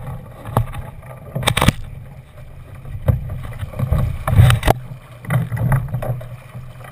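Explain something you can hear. A sail flaps and rustles in the wind.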